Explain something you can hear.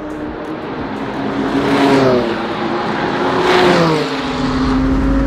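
A race car roars past at high speed, its engine pitch dropping as it goes by.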